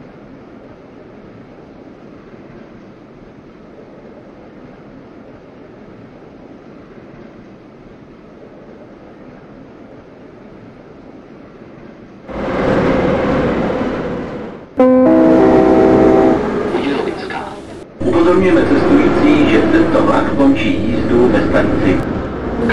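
A metro train rumbles along rails in a tunnel.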